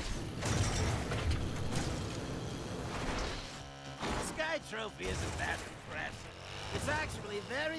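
A quad bike engine buzzes.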